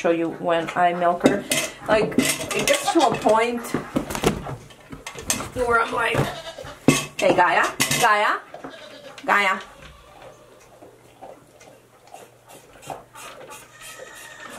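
Milk squirts into a metal cup in short spurts.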